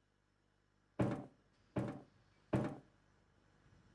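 Heavy thumps sound on hollow metal.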